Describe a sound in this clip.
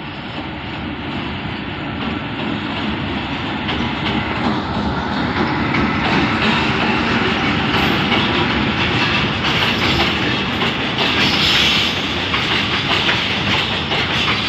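Freight wagons clatter and rattle over the rails, growing louder.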